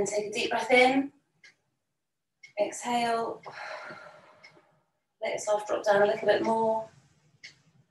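A woman speaks calmly, close to the microphone, in short phrases.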